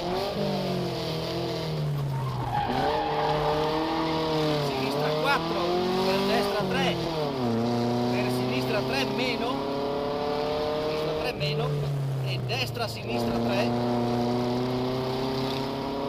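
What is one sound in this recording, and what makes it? A car engine roars loudly, revving up and dropping as the gears change.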